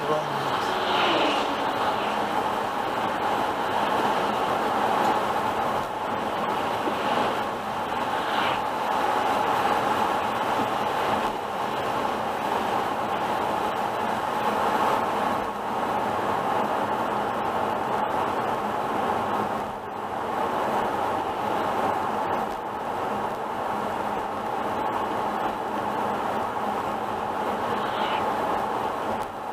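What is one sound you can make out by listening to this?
Tyres hiss steadily on a wet road.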